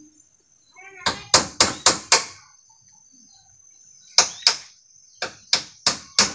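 A man knocks on wood with sharp, quick blows.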